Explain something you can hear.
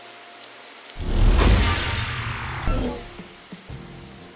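A game character bursts apart in a loud crackling flurry of sparkles.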